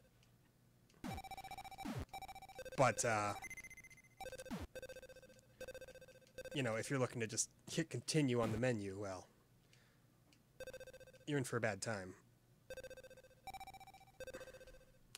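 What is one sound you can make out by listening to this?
Electronic game blips and beeps sound in quick bursts.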